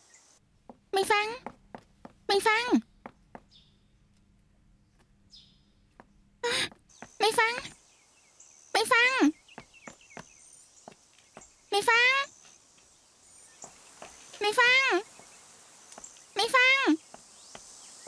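A young woman calls out loudly again and again.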